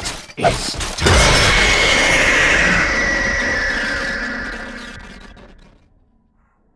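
An animatronic screeches in a harsh, distorted jumpscare scream that slowly fades.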